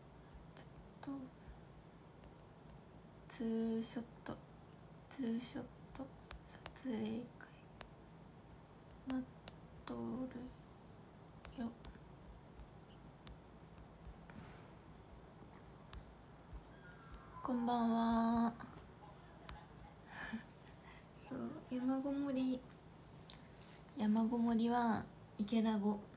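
A young woman speaks close to a microphone in short, casual bursts with pauses.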